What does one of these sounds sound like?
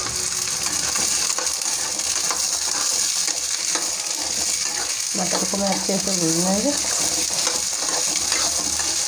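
Peas sizzle and hiss in a hot pan.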